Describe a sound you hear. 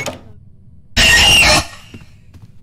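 A creature lets out a sudden loud screech.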